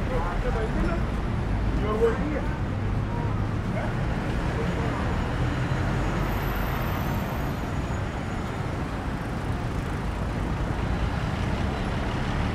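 City traffic rumbles steadily in the distance outdoors.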